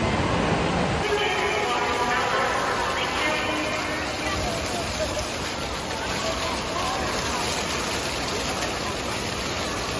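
Water splashes and gushes onto the ground.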